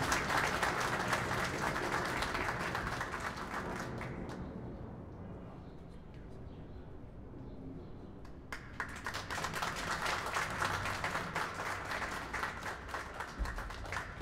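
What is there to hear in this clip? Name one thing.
An audience claps and applauds outdoors.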